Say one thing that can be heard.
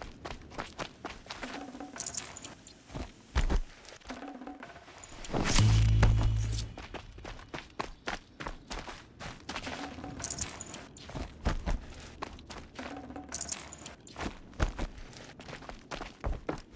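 Footsteps crunch quickly over dry dirt and gravel.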